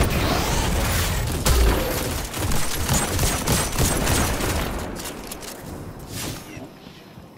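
Gunshots fire rapidly with heavy booms.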